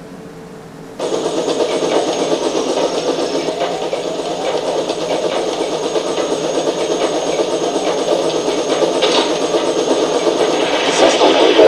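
A flying machine's engine roars steadily.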